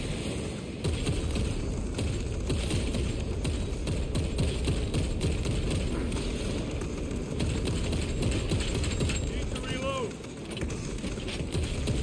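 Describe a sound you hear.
Heavy gunfire rattles and booms rapidly.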